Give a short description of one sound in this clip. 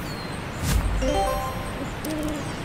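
A short rising chime rings out.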